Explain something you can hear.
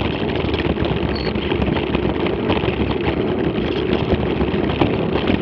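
Tyres crunch and rattle over a rough gravel track.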